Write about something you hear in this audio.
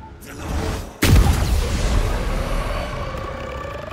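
A magical blast bursts with a loud roar and fades away.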